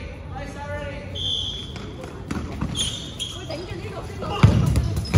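Young people shout and call out in a large echoing hall.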